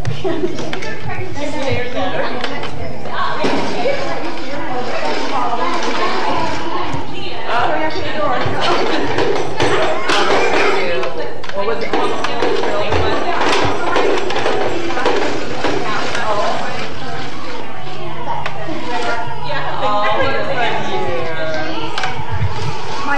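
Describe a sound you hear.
Small children babble and squeal close by.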